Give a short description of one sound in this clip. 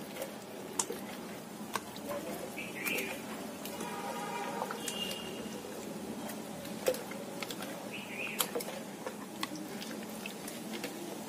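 A hand squelches and mashes a soft mixture inside a plastic container.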